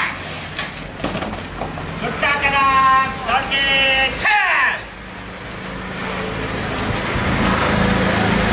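Many feet march and jog in step on pavement.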